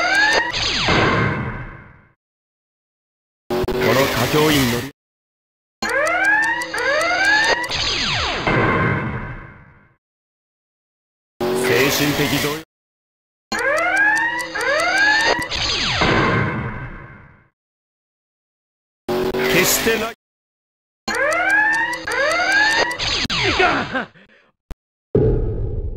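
Bright electronic jingles with rising tones play in short bursts, separated by silences.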